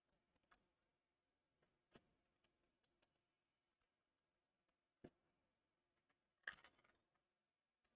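A few soft clicks and knocks sound as plastic parts are handled and fitted together.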